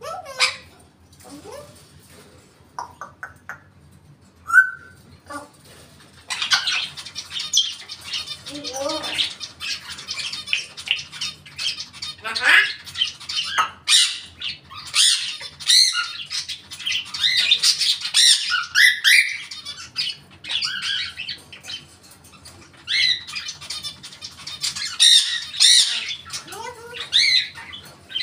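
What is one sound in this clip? A parrot whistles, squawks and chatters close by, in bursts.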